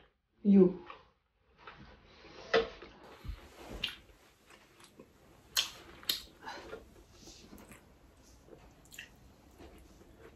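A man slurps and chews food noisily.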